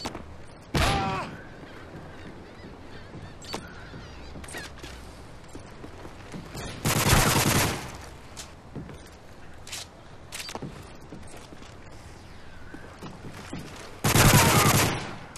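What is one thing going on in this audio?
A rifle fires loud booming shots that echo away.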